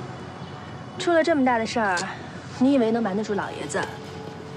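A young woman speaks sharply, close by.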